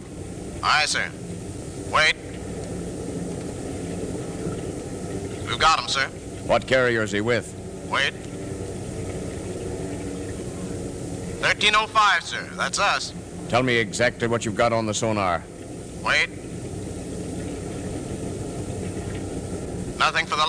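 A man speaks with expression, heard through an old radio recording.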